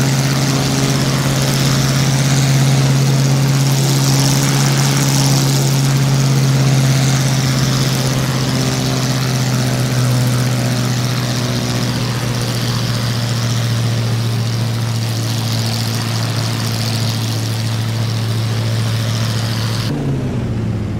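A propeller plane engine drones steadily outside.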